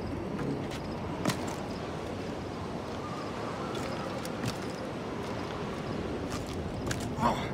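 Palm leaves rustle and branches creak.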